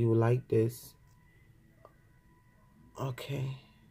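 A pen cap clicks off.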